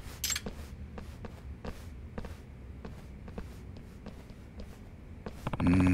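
Footsteps shuffle across a hard floor in a large echoing hall.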